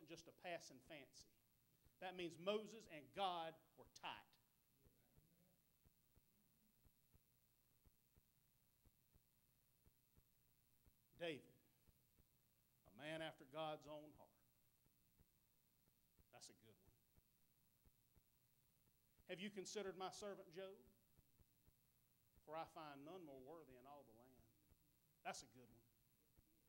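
A man preaches into a microphone with animation, speaking in short bursts with long pauses.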